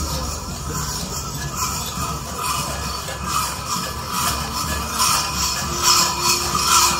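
Small bells on costumed dancers jingle in quick bursts.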